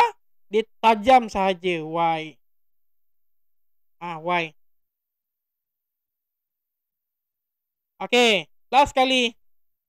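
A man speaks calmly and clearly into a close microphone.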